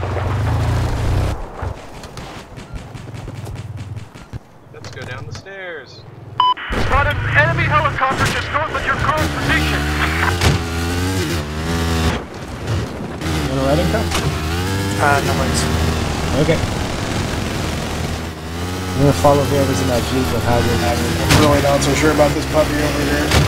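A motorcycle engine revs and roars as the bike rides over rough ground.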